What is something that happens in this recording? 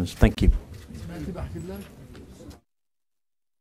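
A crowd of men and women chatter and murmur nearby.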